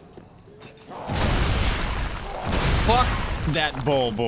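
A heavy crash and rumble of combat sound out.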